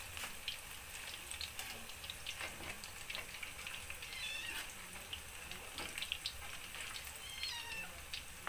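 A metal spoon clinks against a pan.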